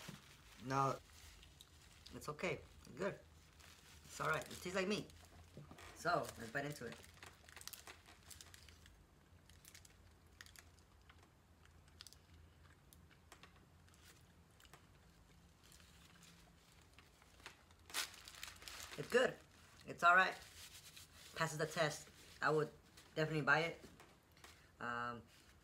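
Paper wrapping crinkles.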